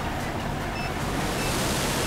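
Water rushes and splashes past a speeding boat.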